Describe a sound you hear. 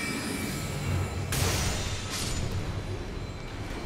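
Magic spells whoosh and shimmer.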